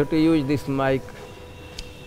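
An elderly man speaks through a microphone, his voice rising in pitch.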